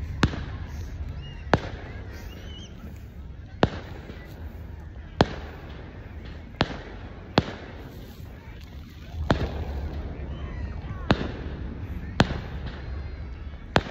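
Fireworks pop and boom in the distance.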